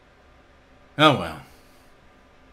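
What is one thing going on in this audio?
A man shouts out loudly once.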